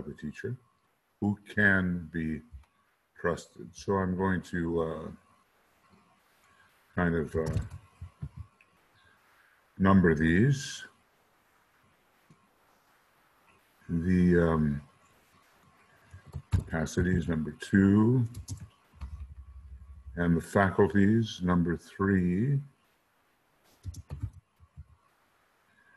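An elderly man speaks calmly and slowly into a microphone, with pauses.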